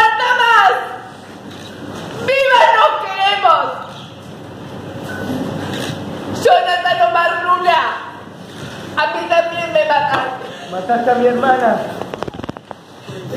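A woman speaks emotionally into a microphone in a large echoing hall.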